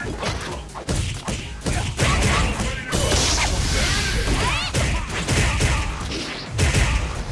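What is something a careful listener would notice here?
Punches and kicks land with sharp smacking hits.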